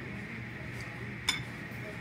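A glass is set down on a table with a knock.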